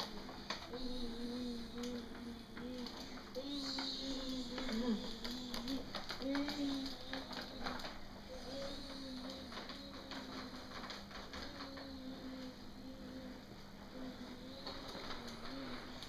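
A cardboard costume rustles and scrapes as a small child moves about.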